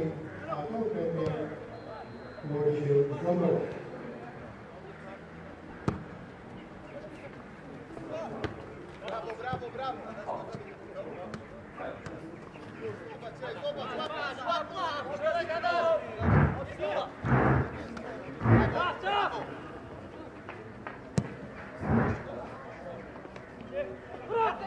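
Football players shout to each other across an open pitch outdoors.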